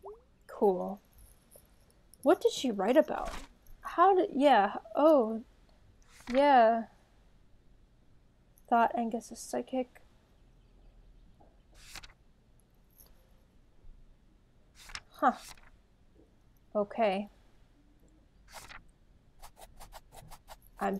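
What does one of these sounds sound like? Paper pages flip over with short rustles.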